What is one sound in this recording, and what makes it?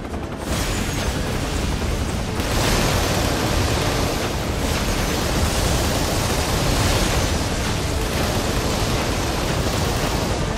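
Helicopter rotors thump steadily.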